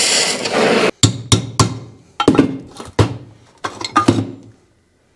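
Metal parts clank as they are handled.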